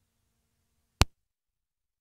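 A phone gives a single sharp click close by.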